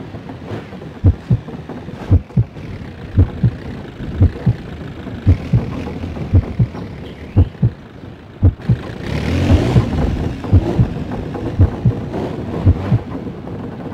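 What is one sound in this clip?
Car tyres thump and knock over wooden planks.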